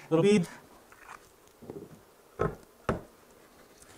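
Wooden pieces knock lightly on a wooden table.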